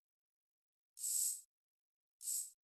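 Menu clicks blip softly.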